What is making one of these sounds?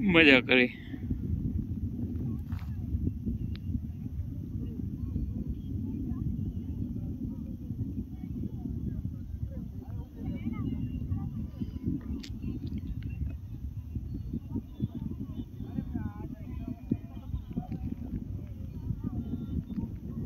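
Wind blows steadily into a microphone outdoors.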